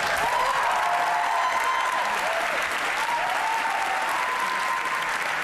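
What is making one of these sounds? A crowd of young people cheers and whoops.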